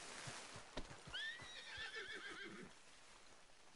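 A horse whinnies.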